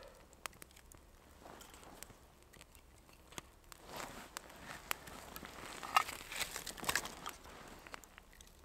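Sticks of firewood knock together as they are stacked on a fire.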